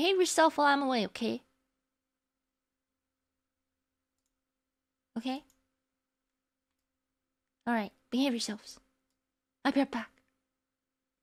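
A young woman speaks playfully and close into a microphone, in short bursts with pauses.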